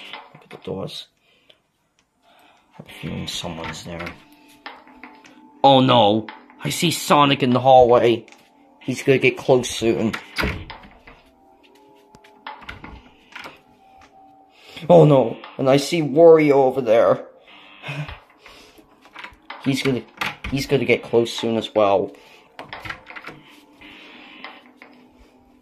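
A door latch clicks and a door swings open.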